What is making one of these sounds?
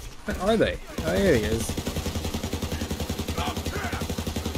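A gun fires in a rapid, steady stream of shots.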